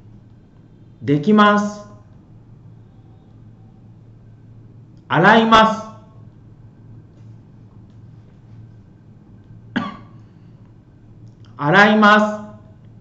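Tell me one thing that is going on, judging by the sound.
A middle-aged man speaks clearly into a microphone in short bursts, as if teaching.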